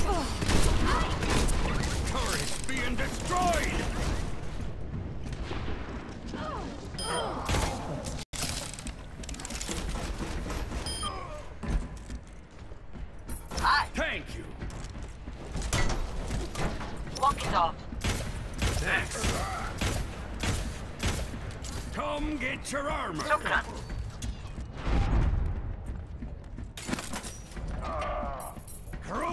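Video game gunfire and explosions burst loudly and repeatedly.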